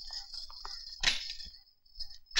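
A door bangs.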